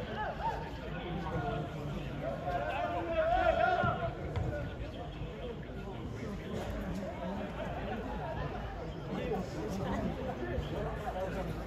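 Young men shout and call to each other across an open outdoor pitch.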